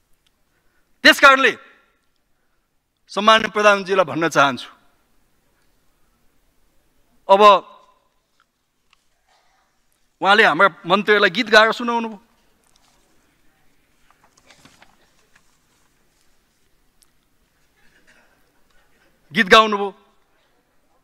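A man speaks into a microphone in short, measured phrases with pauses.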